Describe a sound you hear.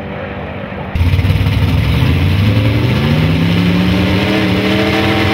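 A pickup truck engine rumbles and revs up loudly.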